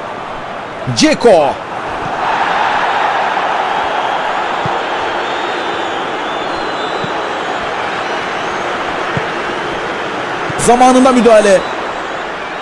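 A referee's whistle blows shrilly twice.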